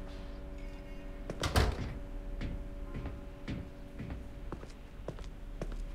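Footsteps clank down metal stairs.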